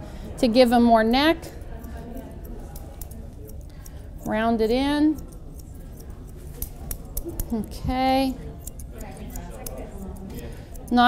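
Scissors snip rapidly through dog fur close by.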